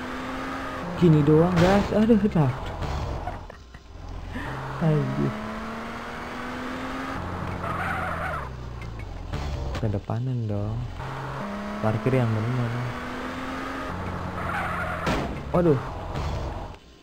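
Tyres screech as a car slides.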